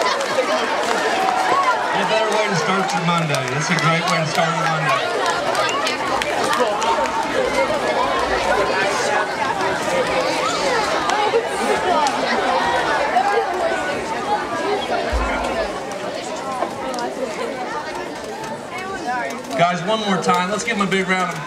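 A large audience murmurs and cheers in an echoing hall.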